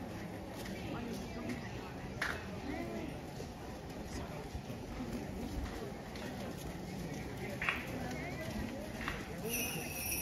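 Small hand bells jingle in short, sharp shakes.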